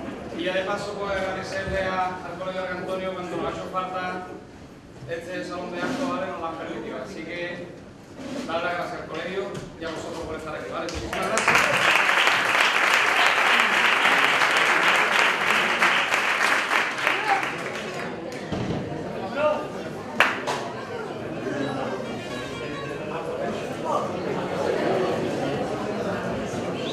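A guitar is strummed.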